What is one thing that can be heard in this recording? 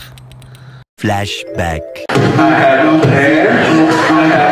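A young man sings into a microphone on a stage.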